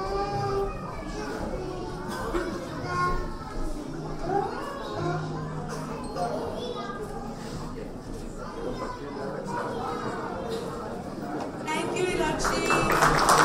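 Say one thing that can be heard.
A young girl speaks softly through a microphone and loudspeakers.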